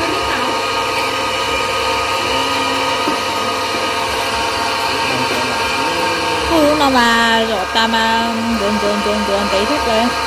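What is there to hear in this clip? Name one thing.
An electric meat grinder motor hums and whirs steadily.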